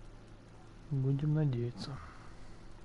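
A man with a deep, low voice speaks briefly and quietly.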